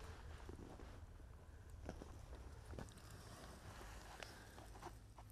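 Wind rumbles across open ground outdoors.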